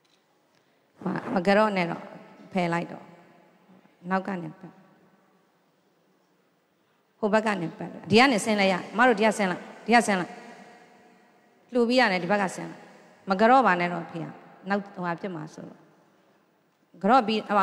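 An elderly man speaks loudly in slow phrases.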